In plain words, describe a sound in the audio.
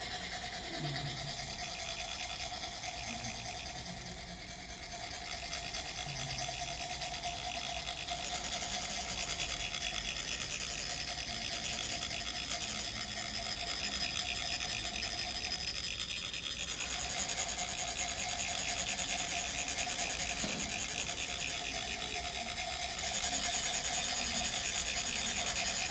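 Metal funnels rasp against each other in a fast, steady rhythm.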